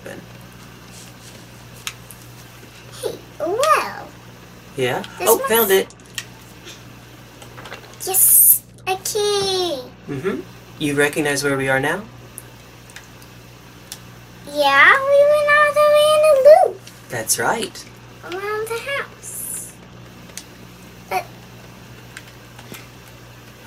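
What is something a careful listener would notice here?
A young girl talks excitedly close to a microphone.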